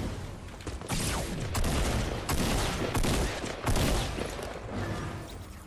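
Gunfire crackles in loud rapid bursts.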